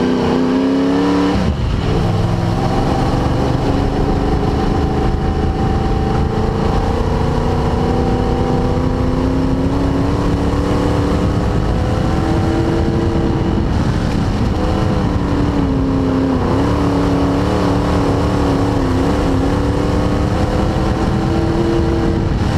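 The car's body rattles and road noise rumbles throughout.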